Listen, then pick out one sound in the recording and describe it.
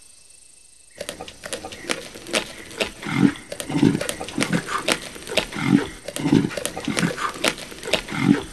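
Animals tear and chew at meat with wet crunching sounds.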